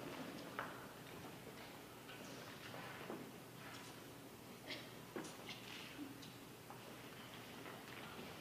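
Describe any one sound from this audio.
A man speaks on stage in a large hall, heard from a distance.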